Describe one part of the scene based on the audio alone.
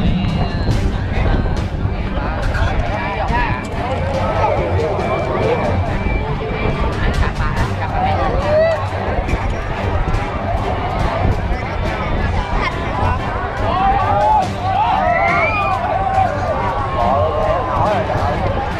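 A large crowd chatters and calls out outdoors in the distance.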